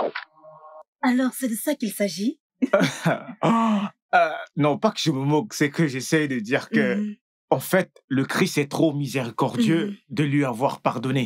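A woman talks with animation, close by.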